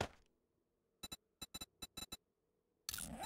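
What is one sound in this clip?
Short interface clicks sound as items in a video game menu are selected.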